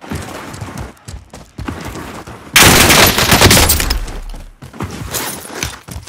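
Gunshots fire in quick bursts close by.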